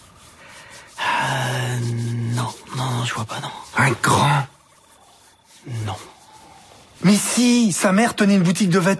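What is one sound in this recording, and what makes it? A middle-aged man talks with animation nearby.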